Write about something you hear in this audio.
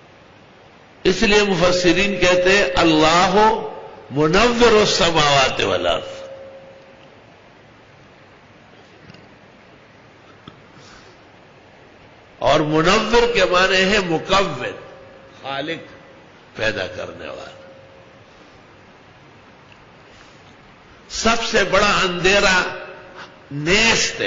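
An elderly man speaks slowly and earnestly into a microphone, in bursts with long pauses.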